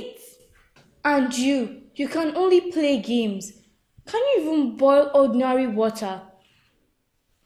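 A young girl speaks with agitation, close by.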